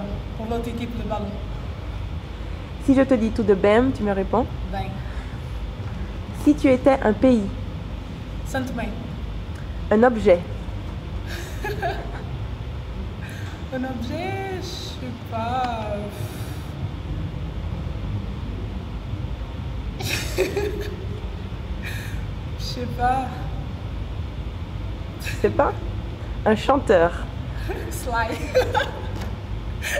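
A young woman talks calmly and cheerfully close by.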